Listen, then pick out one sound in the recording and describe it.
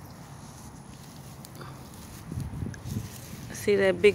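Leafy plants rustle as a hand brushes through them.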